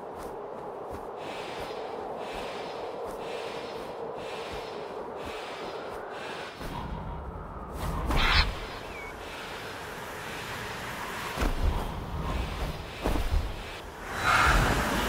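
Wind rushes past a bird in flight.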